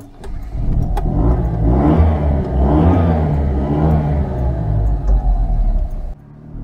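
An old car engine revs up and down, heard from inside the car.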